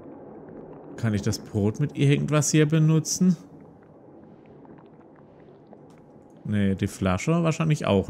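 A man talks into a close microphone, with animation.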